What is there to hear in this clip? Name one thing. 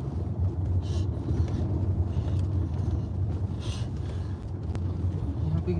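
A car engine rumbles low and steady from inside the car.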